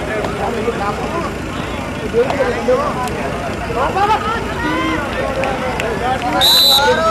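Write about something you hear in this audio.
Men shout excitedly outdoors among a crowd.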